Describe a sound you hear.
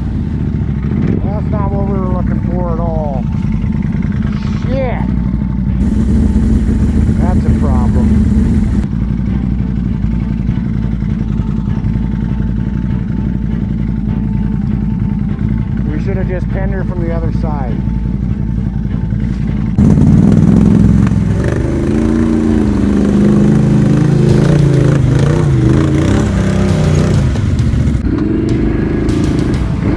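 An all-terrain vehicle engine rumbles and revs up close.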